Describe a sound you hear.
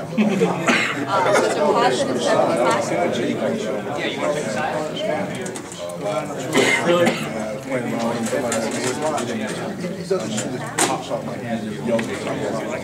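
A crowd of men talk and laugh nearby.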